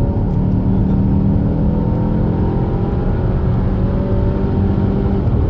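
A car engine drones steadily as the car speeds up.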